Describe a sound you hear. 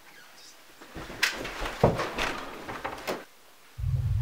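Two men scuffle, with knocks and thumps.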